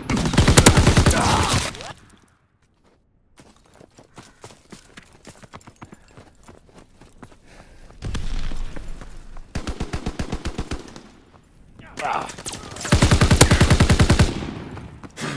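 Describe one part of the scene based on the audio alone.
A rifle fires rapid bursts of shots at close range.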